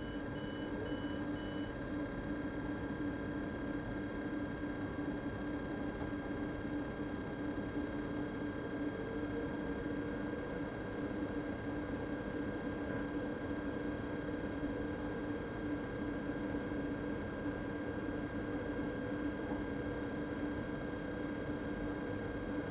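An electric train idles with a steady low hum.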